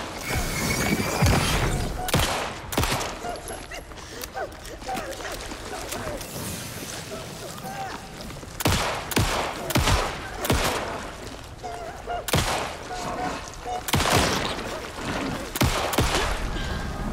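A pistol fires loud gunshots in quick bursts.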